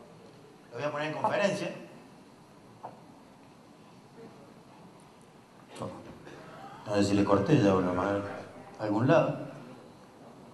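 A man speaks through a microphone in short phrases, echoing in a large room.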